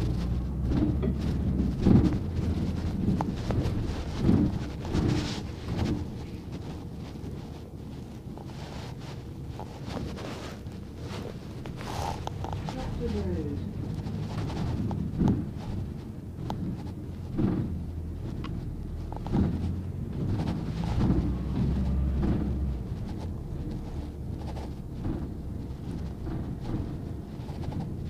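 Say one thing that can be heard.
A bus engine rumbles low and steady as the bus drives along.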